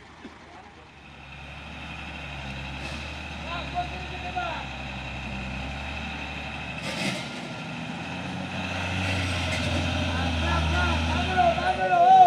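A diesel truck engine roars and strains in mud, growing louder.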